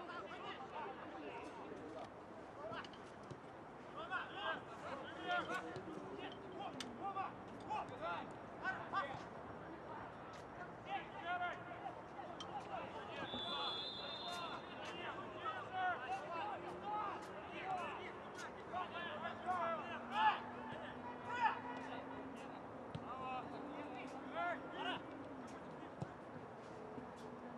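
Players shout to each other across an open pitch outdoors.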